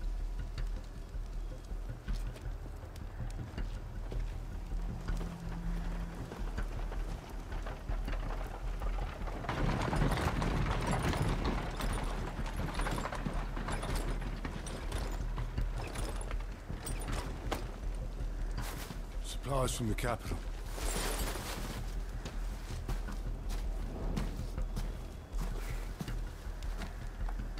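Torch flames crackle and flutter.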